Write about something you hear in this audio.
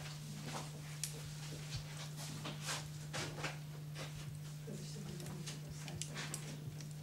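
A fire roars with a soft, steady rush.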